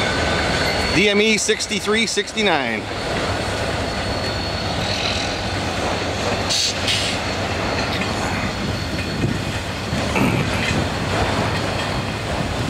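A freight train rumbles and clatters steadily past, close by.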